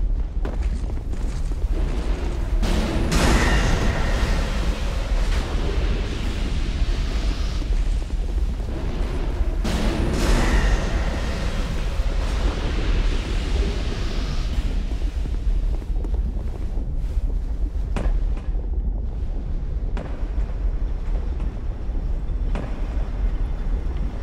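An armoured figure's footsteps thud on stone.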